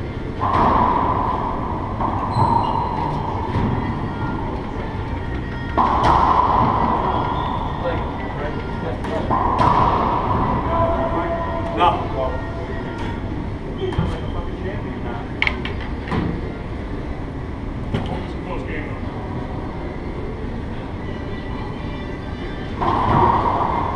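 Men talk and call out casually across the court.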